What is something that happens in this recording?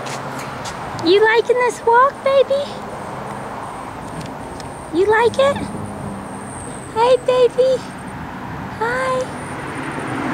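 A baby babbles and squeals.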